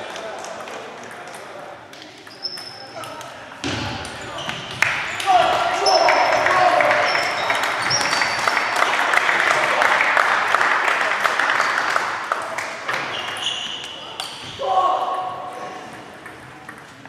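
Table tennis balls click on tables and bats throughout a large echoing hall.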